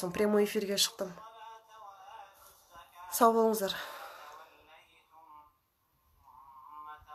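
A woman speaks emotionally and close to a phone microphone, her voice breaking as if crying.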